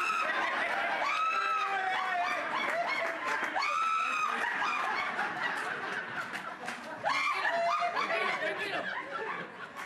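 An elderly man laughs loudly.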